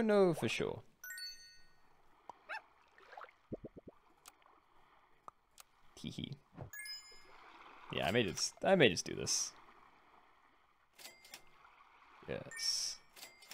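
Short electronic chimes and pops sound now and then.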